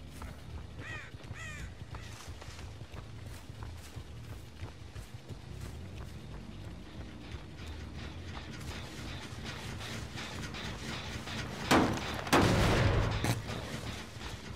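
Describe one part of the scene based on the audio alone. Footsteps rustle through tall dry grass and cornstalks.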